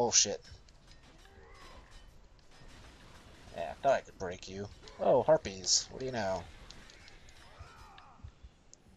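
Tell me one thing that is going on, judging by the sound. Blades whoosh and slash through the air.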